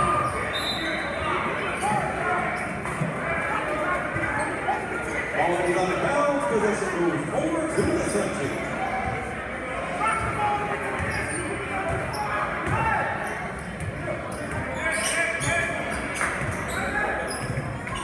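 Basketball sneakers squeak on a hardwood floor.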